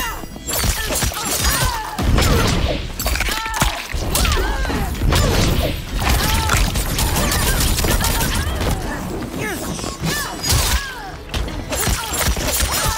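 Whooshing strikes swish through the air.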